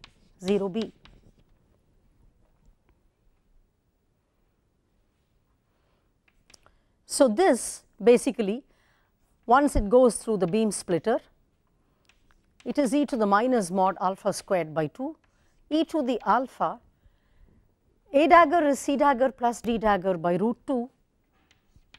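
A woman speaks calmly, close to a microphone, in short phrases with pauses.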